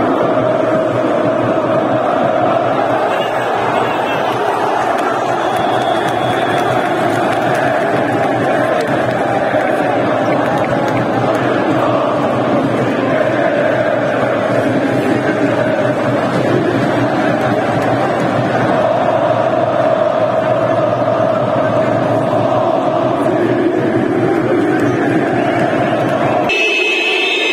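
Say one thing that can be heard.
A large stadium crowd chants and sings loudly in unison, echoing around the stands.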